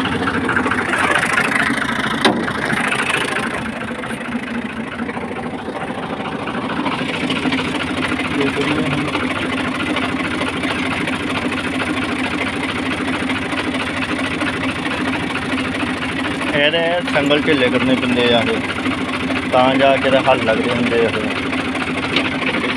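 A tractor engine runs with a steady, low rumble.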